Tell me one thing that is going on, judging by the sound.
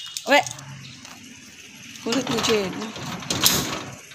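A metal gate rattles and creaks as it swings.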